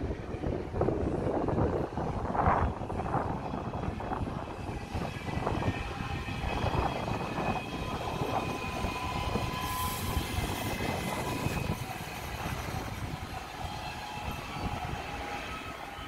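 An electric train approaches and rolls past with a rising hum.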